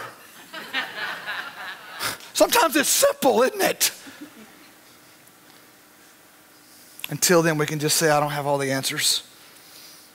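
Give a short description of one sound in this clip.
A middle-aged man speaks with animation into a microphone in a large hall.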